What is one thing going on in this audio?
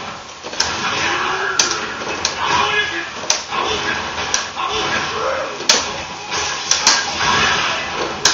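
A fiery blast bursts loudly.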